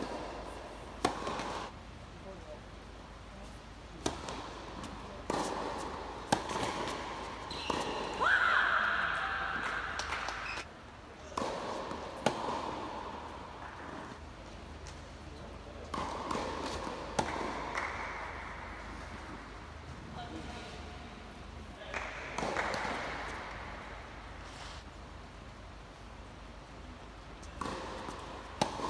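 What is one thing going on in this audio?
Tennis balls are struck sharply by rackets in a rally, echoing in a large hall.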